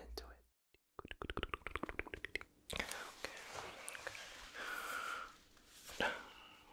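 A towel rustles and brushes close to a microphone.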